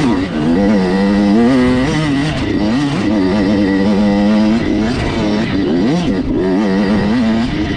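A dirt bike engine roars and revs up and down close by.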